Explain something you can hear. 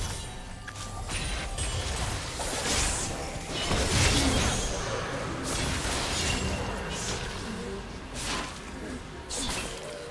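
Game spells burst and whoosh amid clashing combat effects.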